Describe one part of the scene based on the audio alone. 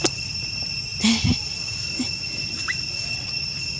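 Leaves rustle as a baby monkey scampers on the ground.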